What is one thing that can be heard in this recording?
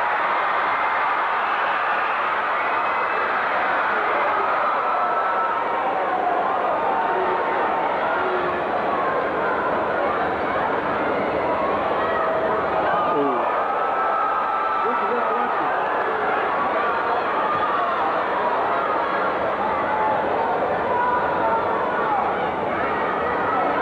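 A large crowd chatters and shouts in a large arena.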